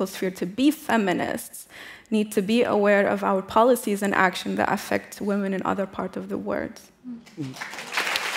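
A young woman speaks calmly and earnestly through a microphone.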